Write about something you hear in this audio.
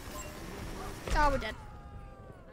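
A loud explosion bursts.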